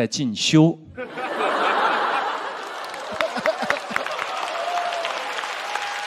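An audience laughs and applauds in a large hall.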